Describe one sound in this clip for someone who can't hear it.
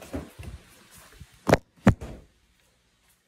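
A phone thumps and rustles as it is handled.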